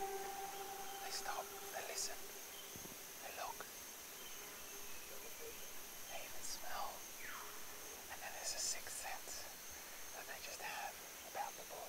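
A middle-aged man speaks quietly and calmly close by.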